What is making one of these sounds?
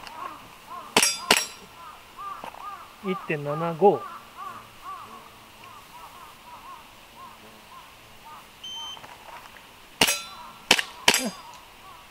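A pistol fires sharp shots outdoors.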